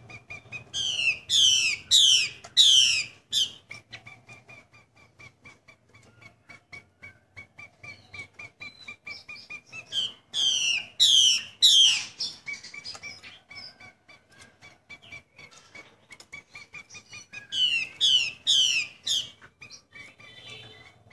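A songbird chirps with quick, soft repeated notes between the songs.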